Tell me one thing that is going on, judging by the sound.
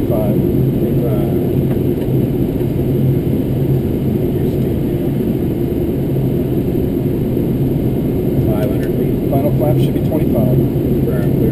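Aircraft engines drone loudly and steadily.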